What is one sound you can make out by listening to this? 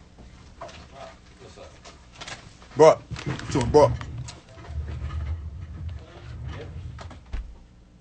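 A young man talks casually close to a phone microphone.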